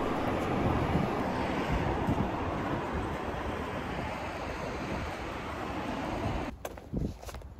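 Wind buffets the microphone in a gusty rumble.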